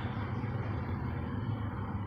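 Pigeons flap their wings in flight.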